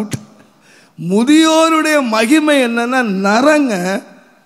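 An elderly man sings out in long, bending notes through a microphone.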